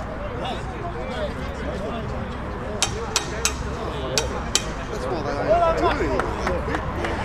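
Players shout to each other across an open outdoor pitch.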